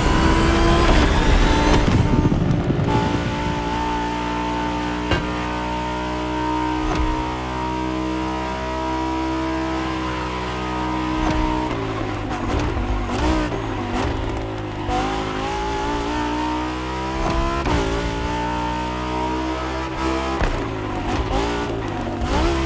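A sports car engine roars at high revs, rising and falling in pitch as the car speeds up and slows down.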